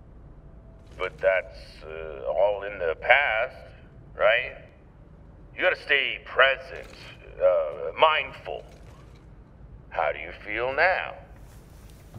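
A man speaks with animation through a helmet's speaker.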